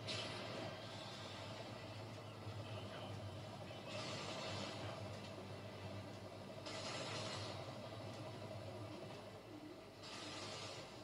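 Whooshing sound effects and low rumbling music play from a television loudspeaker.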